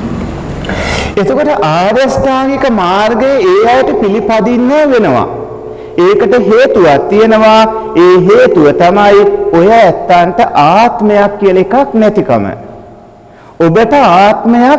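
A man speaks calmly and steadily into a microphone.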